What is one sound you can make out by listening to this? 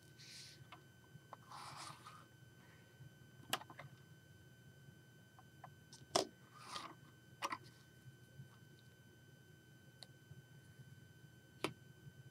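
Plastic toy bricks click and clack as hands pull them apart and snap them together.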